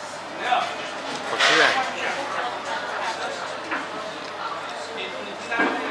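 A man chews food.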